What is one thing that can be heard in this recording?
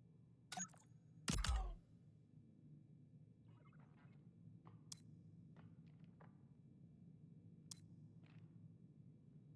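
Short menu clicks and soft whooshes sound now and then.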